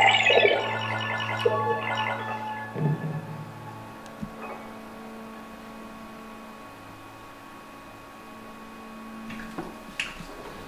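Electronic tones ring out and slowly fade.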